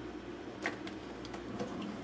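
A button clicks on a coffee machine.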